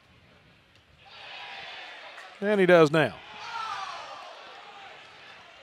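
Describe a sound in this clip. A crowd cheers and claps in a stadium.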